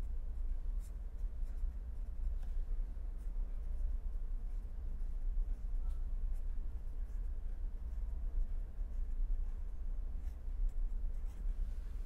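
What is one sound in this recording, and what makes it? A marker pen squeaks and scratches across paper.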